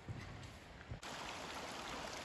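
A small stream trickles and babbles over stones.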